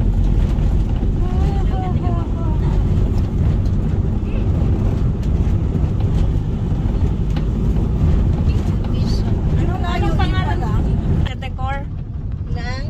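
A vehicle engine rumbles steadily with road noise from inside.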